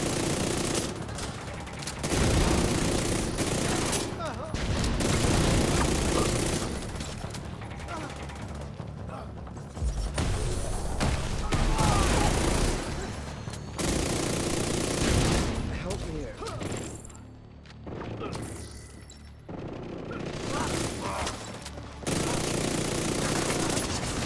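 Guns fire in rapid, loud bursts.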